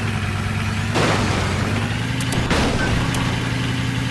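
A vehicle thuds and crashes as it rolls over.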